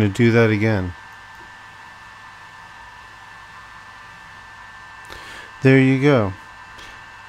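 A machine's fan hums steadily.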